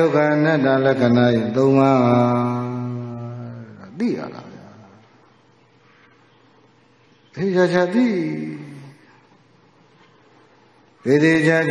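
A man chants slowly into a microphone, his voice echoing slightly.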